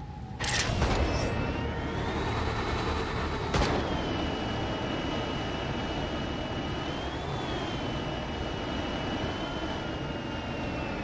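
A glider's engine hums steadily, rising and falling in pitch.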